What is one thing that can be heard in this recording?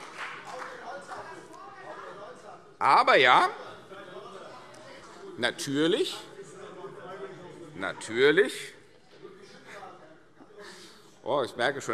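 A middle-aged man speaks forcefully into a microphone in a large hall, raising his voice in loud bursts.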